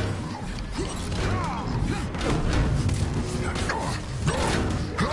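Energy blasts crackle and zap in quick bursts.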